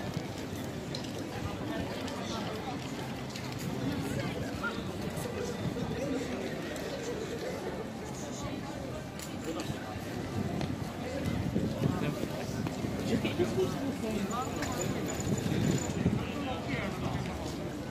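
Footsteps scuff on pavement nearby.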